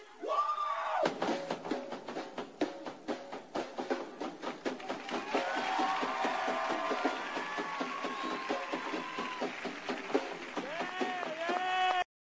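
A drum kit is played fast and hard, with crashing cymbals.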